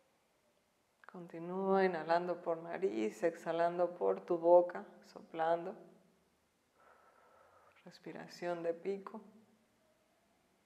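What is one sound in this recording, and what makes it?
A woman speaks calmly, giving instructions close to a microphone.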